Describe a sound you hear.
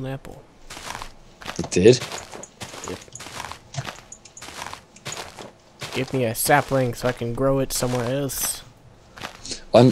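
Leaves crunch and rustle in quick bursts.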